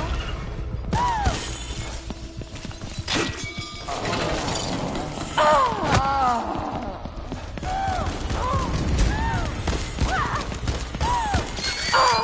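A large monster shrieks with high, wavering cries.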